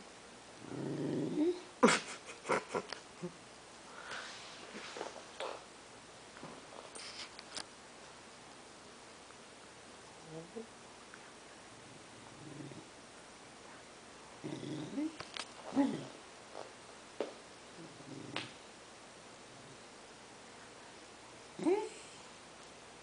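A dog whines softly.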